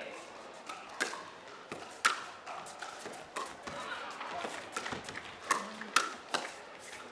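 Pickleball paddles pop sharply against a plastic ball in a quick rally, echoing in a large hall.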